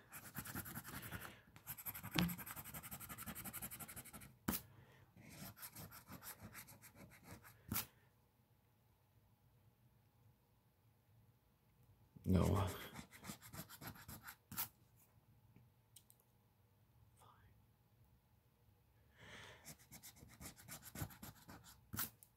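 A fingernail scratches and scrapes at a ticket in short, rapid strokes.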